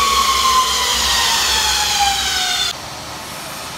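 A mixer motor whines, its pitch slowly falling.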